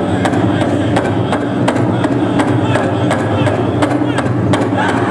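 Bells on a dancer's regalia jingle in a steady beat.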